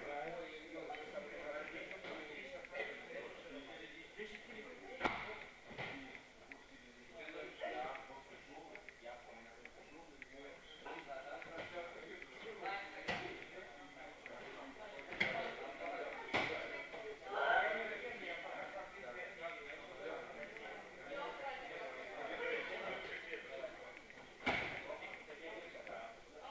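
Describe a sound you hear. Young men talk and call out in a large echoing hall.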